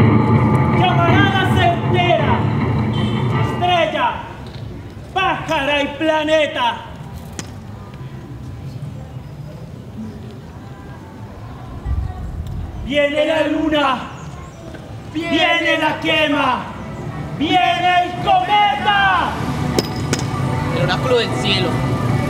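A man sings loudly outdoors.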